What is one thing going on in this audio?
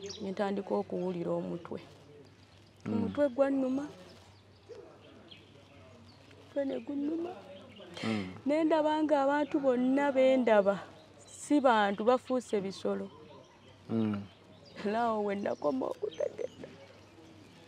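A young woman speaks with emotion, close to a clip-on microphone.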